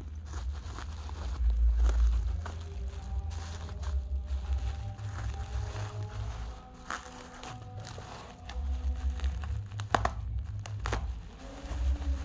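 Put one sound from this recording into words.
A blade slices through plastic wrap.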